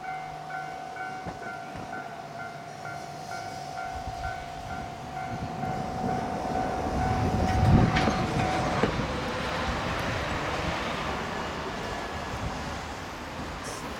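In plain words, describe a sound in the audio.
A train rumbles into a station and grows louder as it slows down.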